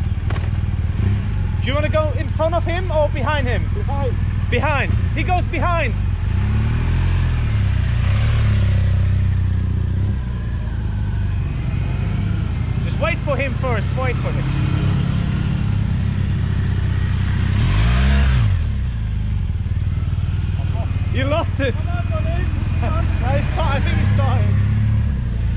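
Large touring motorcycles ride around at low speed.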